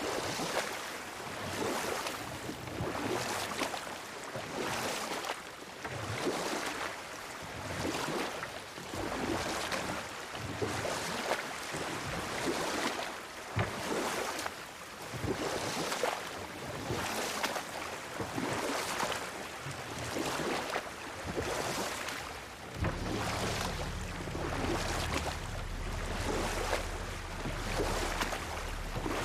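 Oars splash through water in a steady rhythm.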